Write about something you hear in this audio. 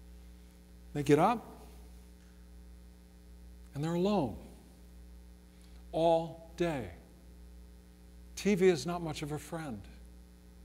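A middle-aged man speaks calmly in short phrases, with pauses between them.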